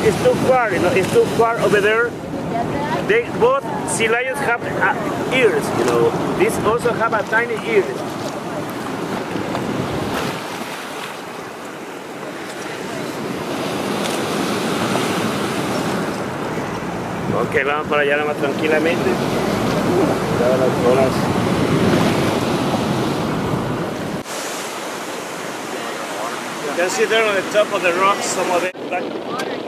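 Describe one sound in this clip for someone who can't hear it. Waves crash and surge against rocks close by.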